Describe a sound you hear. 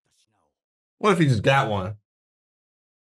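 A young man speaks briefly, close by.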